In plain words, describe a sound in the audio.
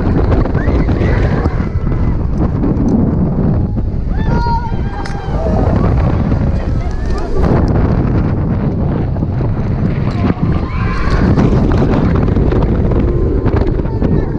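A roller coaster rattles and rumbles along its track.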